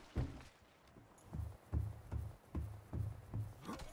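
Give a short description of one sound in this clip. Footsteps thud on a hard deck.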